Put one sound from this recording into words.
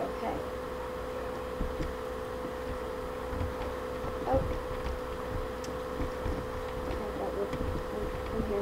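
Soft crunching thuds sound as leafy blocks are broken, again and again.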